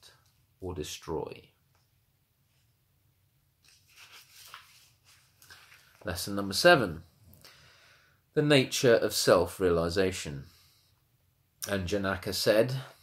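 A man speaks calmly and close by, reading aloud in pauses.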